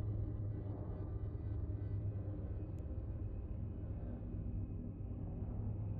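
A spaceship engine hums with a deep, steady rumble.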